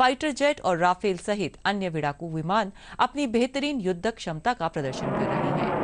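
A woman reads out the news calmly into a close microphone.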